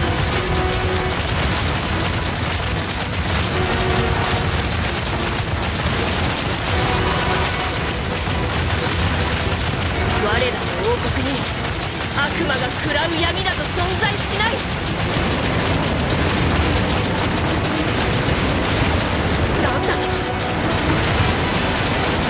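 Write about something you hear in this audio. Rapid gunshots fire in quick bursts.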